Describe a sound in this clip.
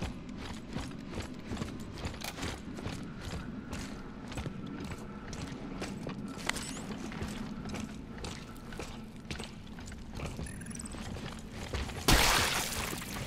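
Heavy boots thud steadily on a hard floor.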